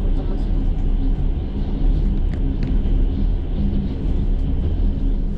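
A vehicle rumbles steadily as it rolls along, heard from inside.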